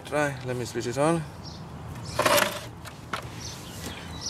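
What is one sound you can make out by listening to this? A plastic scale is set down on pavement with a light knock.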